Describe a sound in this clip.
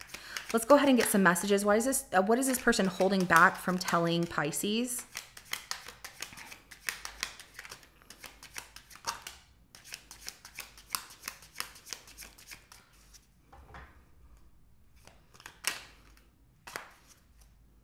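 Playing cards flick and slap together as they are shuffled by hand.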